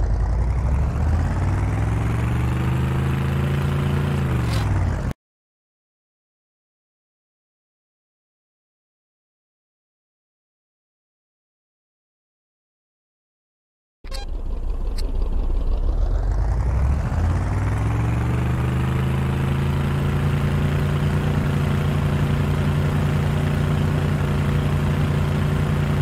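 A vehicle engine drones and revs steadily.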